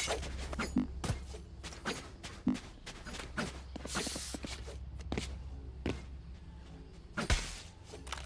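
A young man talks with animation into a nearby microphone.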